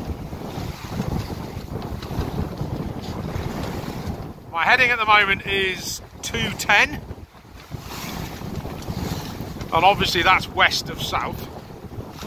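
Water rushes along the hull of a small sailboat moving through waves.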